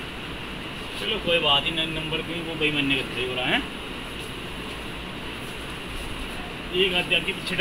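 A man speaks aloud nearby.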